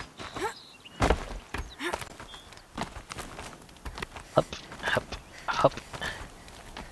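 Hands and feet scrape and knock against rock during a climb.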